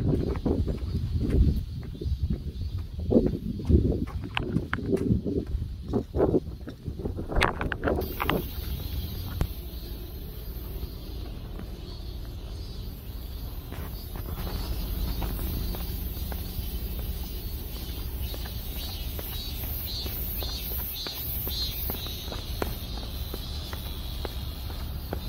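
A cat's paws patter softly on a path.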